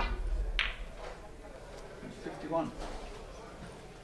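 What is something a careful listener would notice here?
Billiard balls click sharply together.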